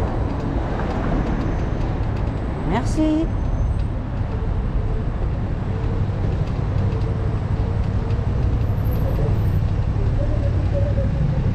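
Cars drive along a nearby street with a steady low rumble.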